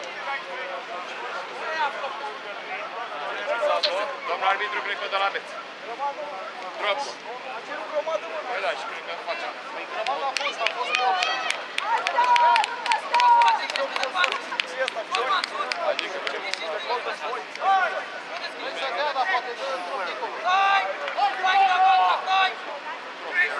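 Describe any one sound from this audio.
Young male rugby players shout and call out across an open field at a distance.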